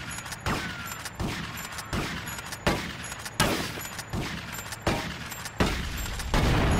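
Gunshots fire in quick succession.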